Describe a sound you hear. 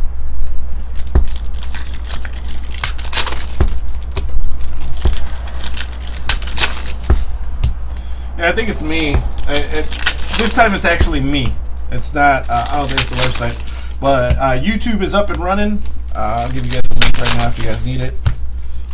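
A plastic wrapper crinkles and tears.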